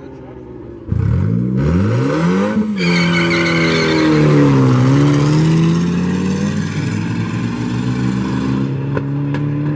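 Car engines roar as the cars accelerate away.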